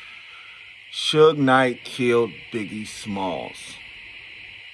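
A man speaks close to a phone's microphone in a calm voice.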